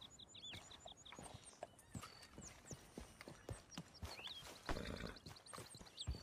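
Footsteps run across dirt and rock.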